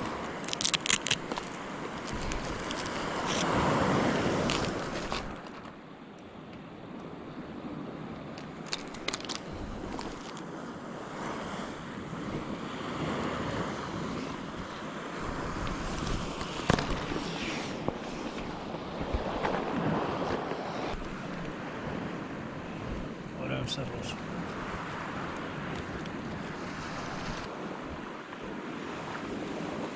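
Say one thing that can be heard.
Wind blows outdoors in gusts.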